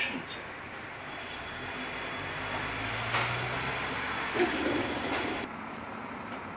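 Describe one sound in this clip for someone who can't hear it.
A tram's door warning beeps in steady repeated tones.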